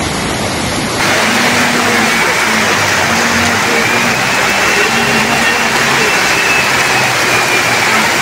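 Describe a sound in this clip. Vehicles splash through deep floodwater.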